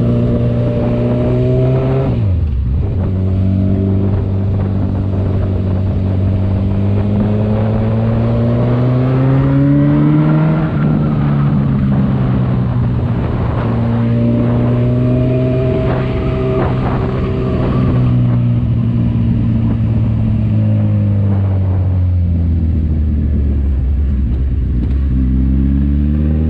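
A motorcycle engine hums close by and rises and falls in pitch as it speeds up and slows down.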